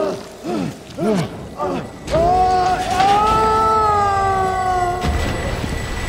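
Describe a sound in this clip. A huge monster lets out deep, wavering roars and groans.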